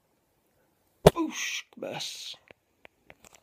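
A hand bumps and rubs against the microphone.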